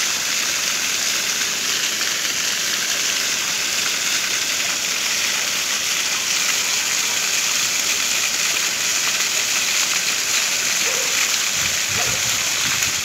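Fountain jets spray and splash steadily into a shallow paved pool.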